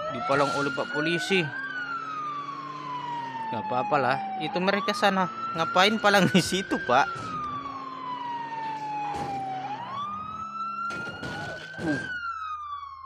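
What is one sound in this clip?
A police siren wails, slowly rising and falling.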